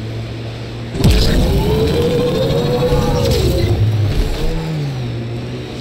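A vehicle engine roars louder and revs up and down.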